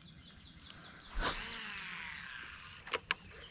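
A fishing rod swishes and the line whizzes off a reel during a cast.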